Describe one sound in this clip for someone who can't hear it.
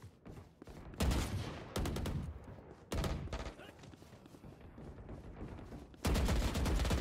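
A rifle fires loud rapid bursts of shots.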